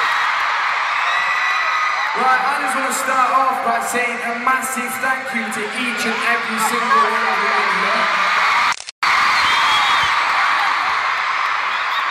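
A large crowd screams and cheers loudly in a big arena.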